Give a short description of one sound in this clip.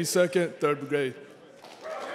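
A man speaks loudly into a microphone in a large echoing hall.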